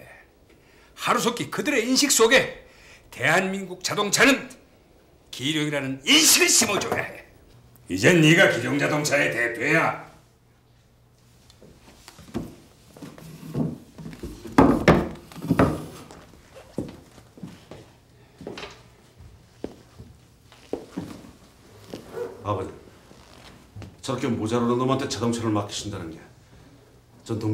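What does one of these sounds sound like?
A man speaks in a calm, serious voice nearby.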